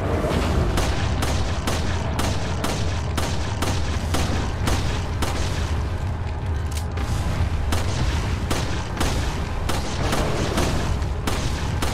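Pistol shots ring out again and again.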